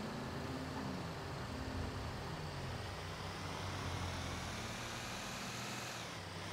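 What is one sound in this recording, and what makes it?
A heavy truck engine rumbles steadily as the truck drives along a road.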